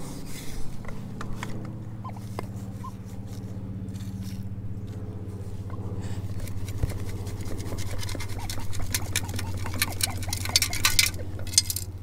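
A metal scoop digs and scrapes into sand.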